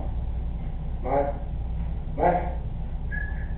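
A dog whines briefly twice close by.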